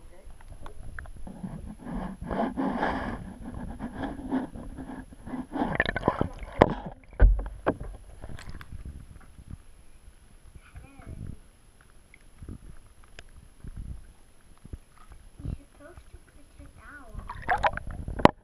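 Water gurgles and bubbles as if heard from underwater.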